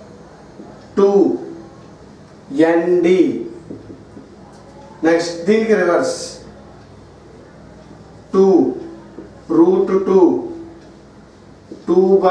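A man speaks in short, clear phrases nearby, with pauses between them.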